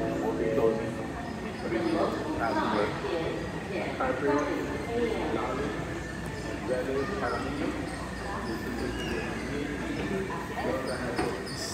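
Rolling suitcase wheels rumble across a hard floor.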